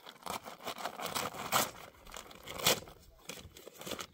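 A man tears open a paper sack.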